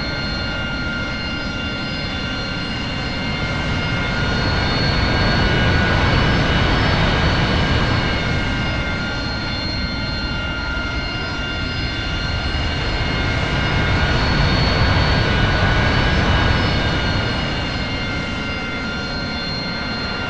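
A jet engine whines and roars steadily, swelling louder and easing off twice.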